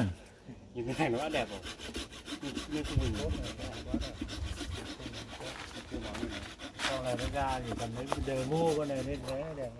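A hand saw cuts through wood with quick, rasping strokes.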